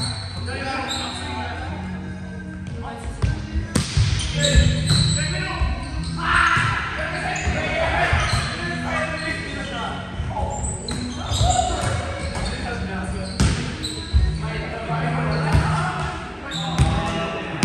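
Young men and women call out and chatter during a game, echoing in a large hall.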